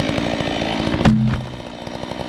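A felled tree crashes heavily to the ground.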